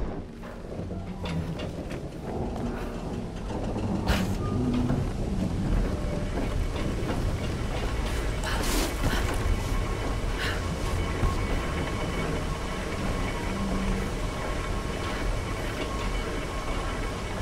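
Footsteps thud on wooden planks and metal.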